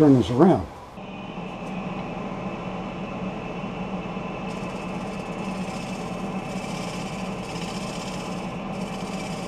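A wood lathe runs with a steady hum.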